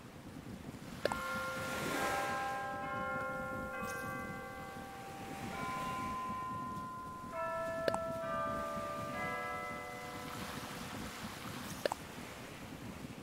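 A bright chiming tune plays in short notes.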